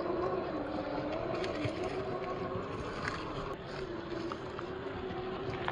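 A small electric motor whines steadily as a toy truck crawls.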